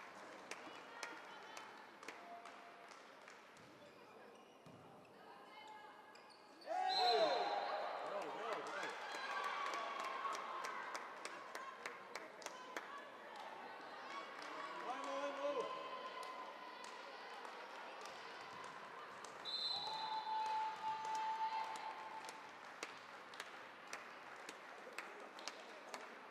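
Balls thud and bounce, echoing in a large hall.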